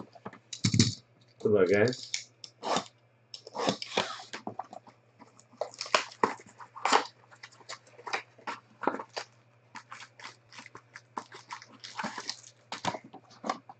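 A cardboard box flap is pulled open.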